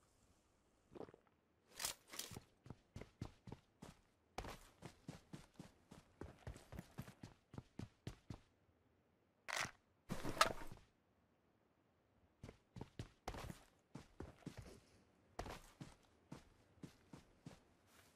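Footsteps thud quickly across wooden boards and grass.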